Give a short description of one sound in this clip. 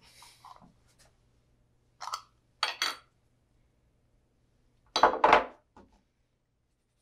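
A tin lid clicks and is set down on a wooden table.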